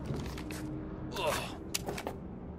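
A person climbs up and grabs onto a ledge.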